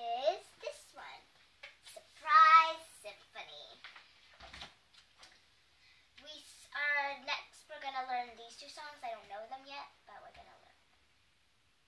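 A young girl speaks nearby.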